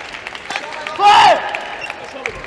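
A young man shouts loudly in a large echoing hall.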